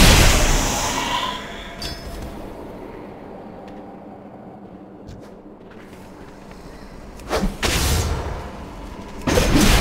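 Magic spell effects whoosh and crackle in bursts.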